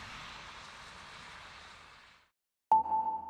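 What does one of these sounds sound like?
Road traffic rushes past steadily outdoors.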